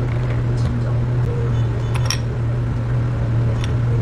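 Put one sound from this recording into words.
A grapefruit slice clinks against ice in a glass.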